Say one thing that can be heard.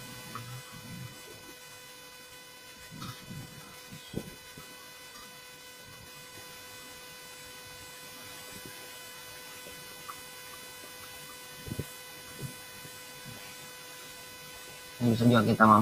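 A young man speaks briefly over an online call, mostly pausing.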